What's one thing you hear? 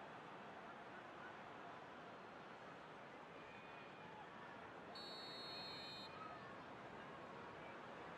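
A large stadium crowd roars and chants steadily.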